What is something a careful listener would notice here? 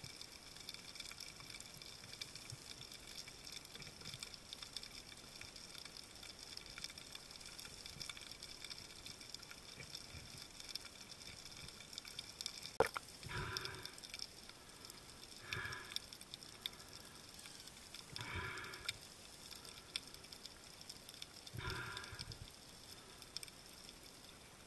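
Faint crackling and hissing fill the water all around.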